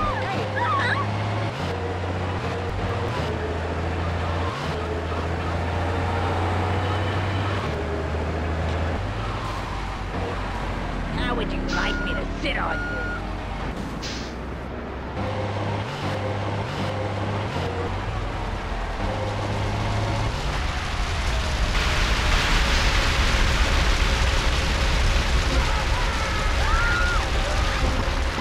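A truck engine rumbles steadily as it drives.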